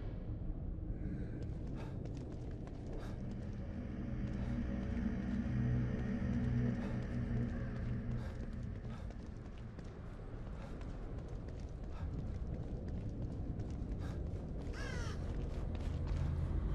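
Footsteps run across wet ground.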